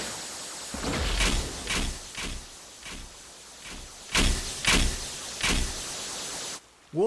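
A spinning top whooshes past again and again.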